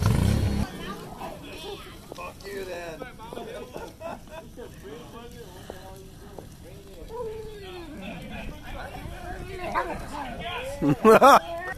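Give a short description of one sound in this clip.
Several men talk and chat casually outdoors.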